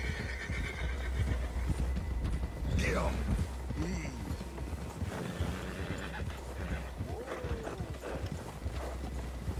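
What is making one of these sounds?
Horses gallop through deep snow with muffled hoof thuds.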